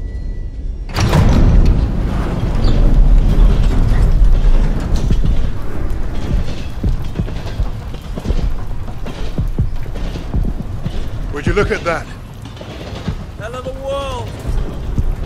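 Wind roars loudly outdoors through a storm.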